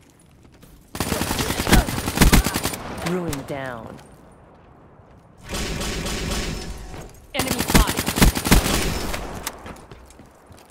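Rapid gunfire rattles out in short bursts.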